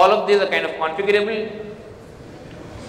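A man speaks through a microphone over loudspeakers in a large hall.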